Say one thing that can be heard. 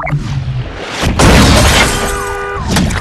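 A car crashes with a loud crunch.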